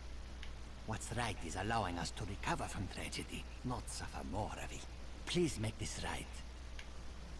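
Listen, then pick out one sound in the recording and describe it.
A man speaks calmly in a low, rough voice.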